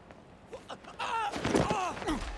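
A man grunts as he is shoved.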